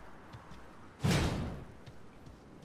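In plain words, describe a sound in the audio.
A sword clangs sharply against stone.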